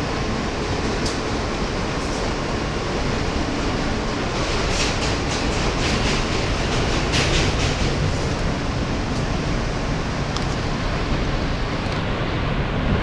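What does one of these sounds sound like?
Metal on the train rattles and squeaks.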